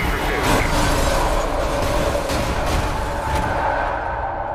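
Metal crashes and debris clatters.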